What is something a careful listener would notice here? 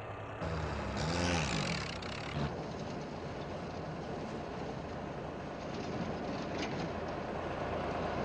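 A jeep engine idles and revs.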